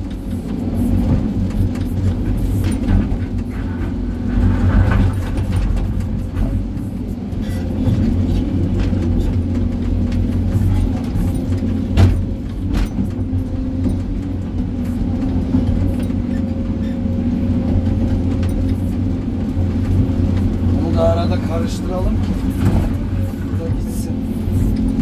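A diesel engine rumbles loudly and steadily, heard from inside a cab.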